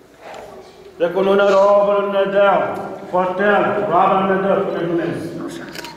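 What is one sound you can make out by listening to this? An elderly man chants loudly and steadily nearby.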